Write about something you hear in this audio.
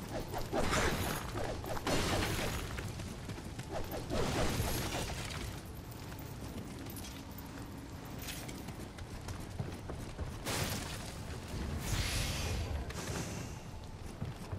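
A sword swishes and clashes.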